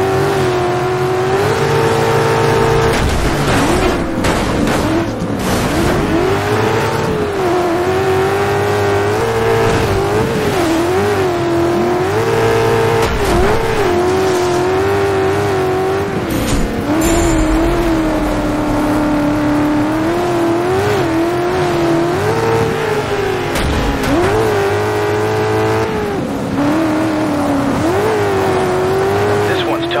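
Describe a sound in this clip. Tyres skid and spray over loose dirt.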